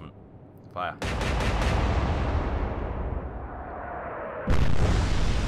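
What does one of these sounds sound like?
A ship's big gun fires with a deep boom.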